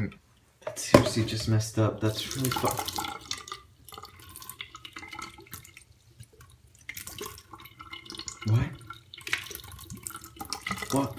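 Soda splashes and fizzes as it pours into a sink.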